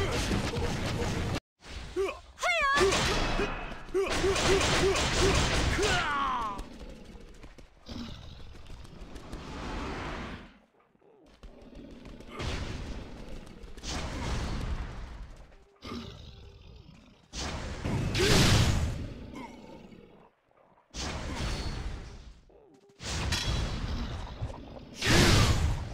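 Magic spells whoosh and crackle as game fighters clash.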